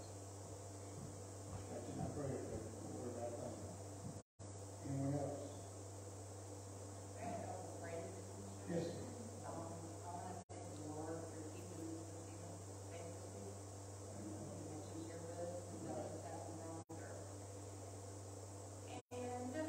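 A man speaks calmly through a microphone, echoing in a large hall.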